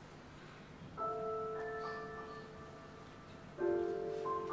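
A piano plays slow notes in a large hall.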